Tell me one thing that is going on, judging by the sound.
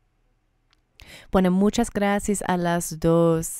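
A second woman speaks with animation into a microphone.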